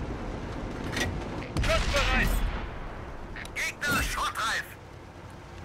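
A tank cannon fires with loud blasts.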